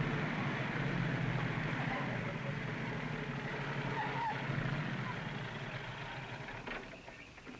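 A car engine rumbles as a car drives up and comes to a stop.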